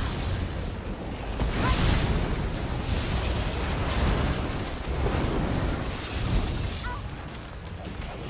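Electric bolts crackle and zap in bursts.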